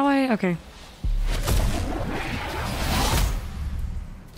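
A magical burst whooshes and rumbles.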